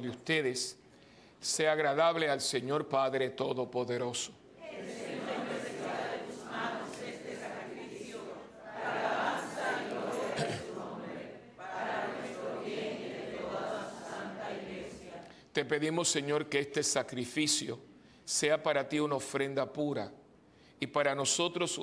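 An elderly man chants in a steady sung tone through a microphone, in a large echoing hall.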